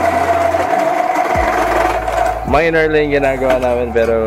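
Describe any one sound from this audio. A drill press motor whirs steadily.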